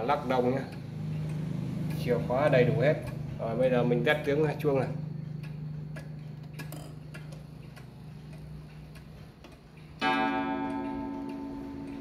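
A pendulum clock ticks steadily.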